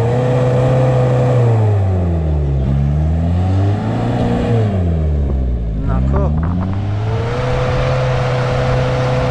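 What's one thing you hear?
An off-road vehicle's engine roars loudly, its pitch rising and falling as it revs up a steep dirt slope.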